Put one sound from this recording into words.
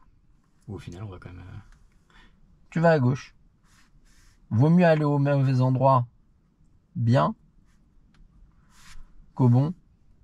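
A man speaks up close in short phrases, with pauses between them.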